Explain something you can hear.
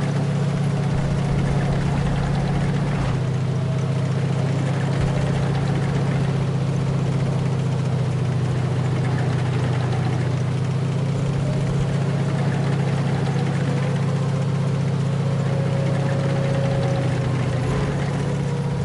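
A tank engine rumbles with a steady low drone.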